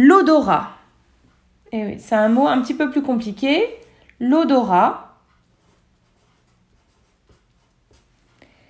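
A felt marker squeaks and scratches on paper.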